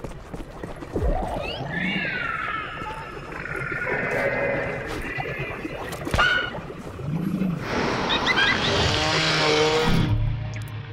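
A large creature lets out a long, warbling screech that rises and falls.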